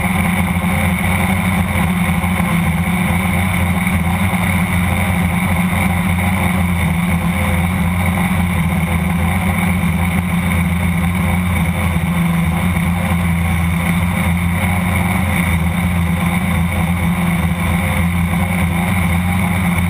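Drone propellers whir with a steady, high buzz throughout.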